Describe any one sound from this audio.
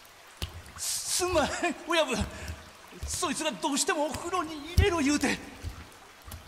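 A man pleads frantically, close by.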